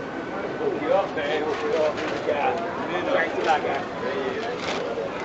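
An elderly man talks with a vendor up close.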